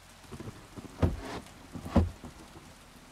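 A wooden drawer slides open with a knock.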